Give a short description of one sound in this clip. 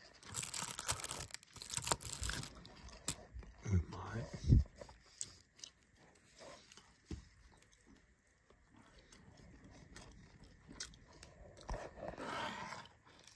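Plastic wrap crinkles and rustles close by.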